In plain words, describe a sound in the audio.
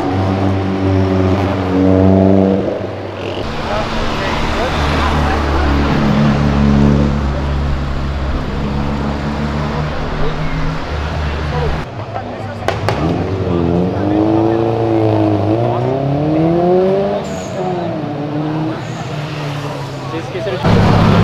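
Car engines roar loudly as cars speed past on a street.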